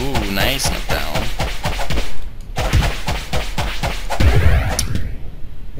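Quick thudding hits land over and over in a fight.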